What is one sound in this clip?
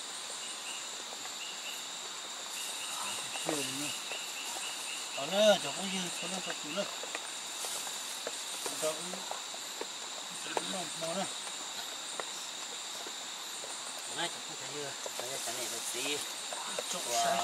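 A wooden stick knocks and scrapes against wood.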